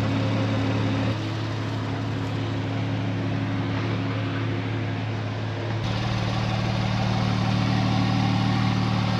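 A sports car engine idles with a deep, steady rumble close by.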